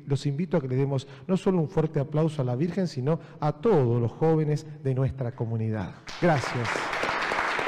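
A man speaks with animation through a microphone in an echoing room.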